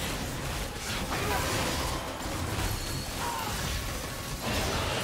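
Spell effects crackle and whoosh in a dense, busy clash.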